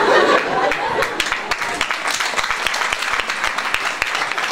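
An audience claps their hands.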